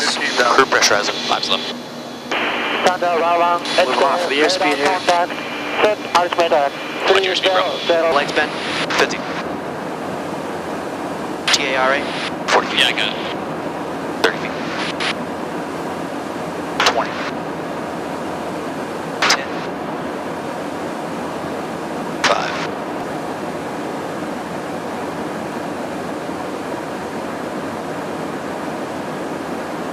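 Turbofan engines roar steadily inside a jet tanker in flight.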